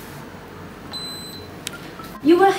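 A charging pad gives a short high beep.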